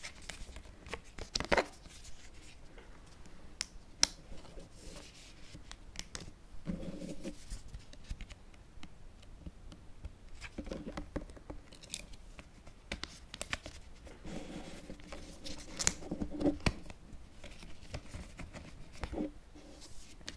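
Cardboard cards tap and slide against each other close by.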